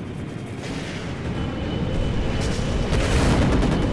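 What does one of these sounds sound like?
Cannon shots and explosions boom nearby.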